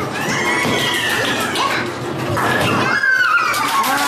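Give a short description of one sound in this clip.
A bowling ball rolls and rumbles down a wooden lane.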